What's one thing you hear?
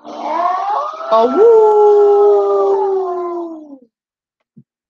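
A wolf howls long and loud.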